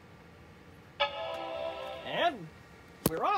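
A laptop plays a short startup chime.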